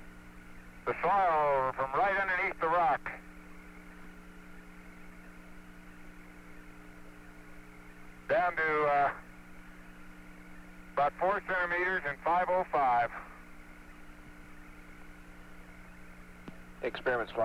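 Men talk in short bursts over a crackly radio link.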